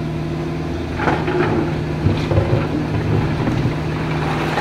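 Rocks clatter and scrape against a metal bucket.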